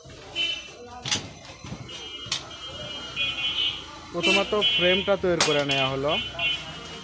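A metal cabinet door rattles and clanks as it is moved.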